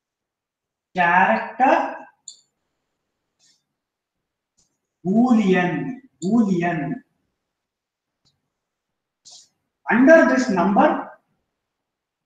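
A man lectures calmly in short phrases, heard through a microphone.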